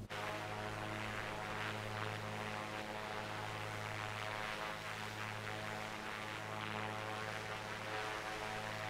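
A single-engine piston propeller plane drones steadily in cruise.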